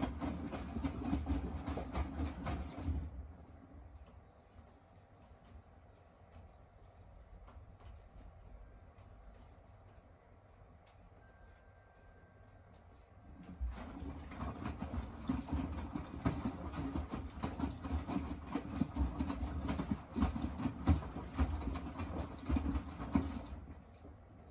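A washing machine drum turns, tumbling wet laundry with a low rumble.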